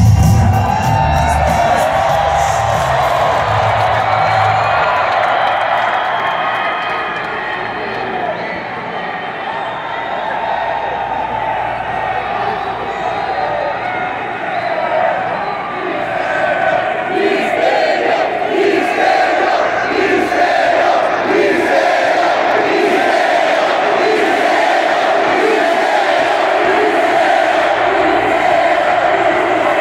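A large crowd cheers and roars in a huge echoing arena.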